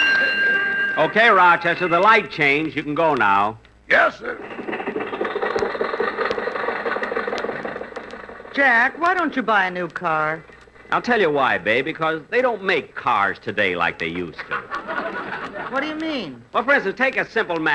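A man speaks through an old radio recording.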